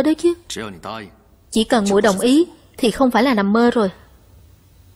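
A man speaks earnestly, close by.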